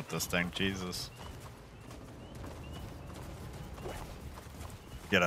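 Footsteps tread quickly over soft forest ground.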